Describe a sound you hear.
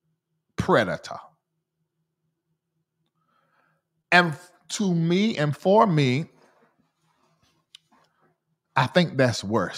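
A man speaks with animation into a close microphone, pausing between phrases.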